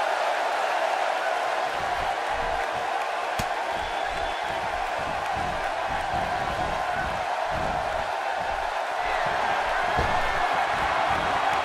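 A large crowd cheers and roars steadily in an echoing arena.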